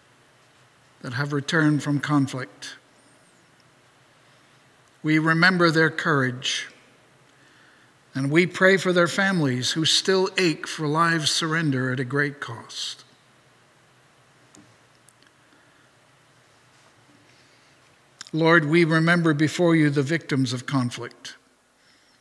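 A middle-aged man speaks calmly into a microphone, in pauses.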